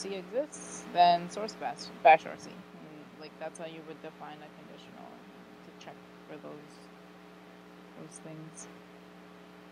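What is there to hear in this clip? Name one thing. A young woman speaks through a microphone.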